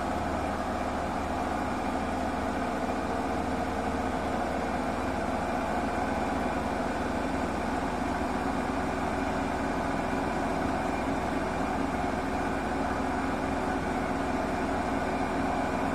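Water sloshes and swirls inside a washing machine.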